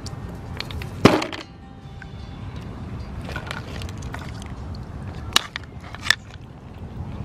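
Plastic toys knock against each other in a plastic tub.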